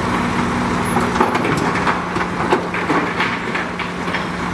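Bulldozer tracks clank and scrape over dirt and rubble.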